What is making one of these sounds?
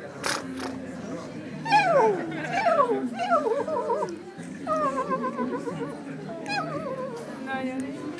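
A toddler laughs loudly.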